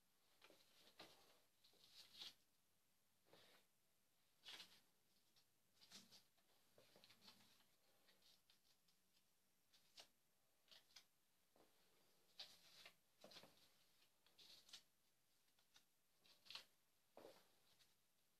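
Faint taps and rustles sound against a wall.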